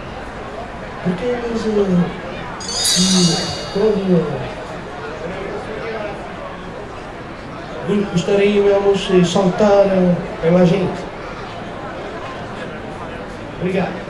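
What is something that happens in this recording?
A man speaks through a loudspeaker outdoors.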